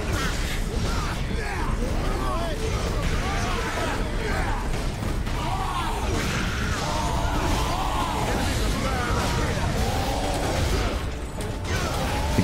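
Heavy blows and weapons clash in a noisy, chaotic fight.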